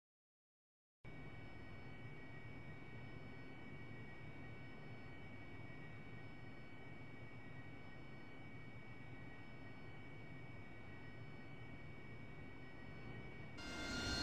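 A jet engine whines and hums steadily.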